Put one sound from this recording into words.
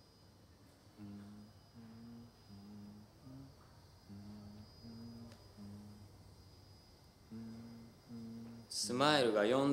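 A young man speaks quietly and slowly nearby.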